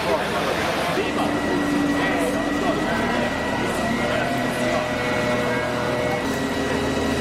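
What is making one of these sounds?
A fire engine's diesel engine idles.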